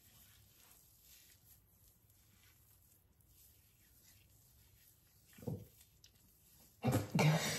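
Fingers rub and rustle softly through wet hair.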